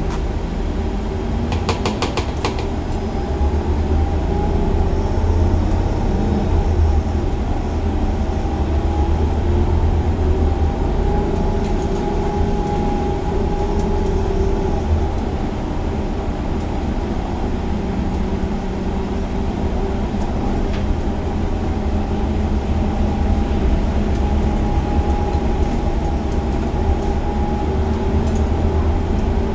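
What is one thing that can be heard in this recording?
A large diesel engine rumbles steadily.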